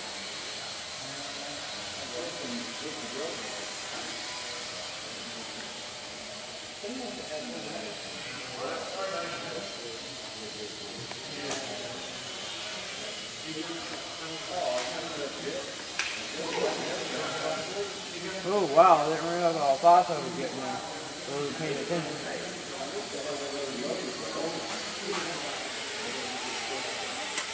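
A small drone's propellers buzz with a steady high whine in a large echoing hall.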